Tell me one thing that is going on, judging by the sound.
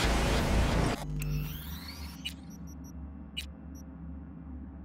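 Soft electronic menu clicks sound.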